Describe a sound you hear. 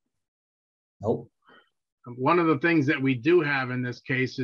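A young man speaks calmly over an online call.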